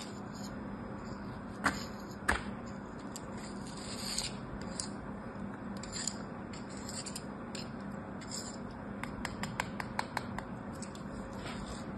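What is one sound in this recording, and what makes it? A pen tip scrapes softly through kinetic sand.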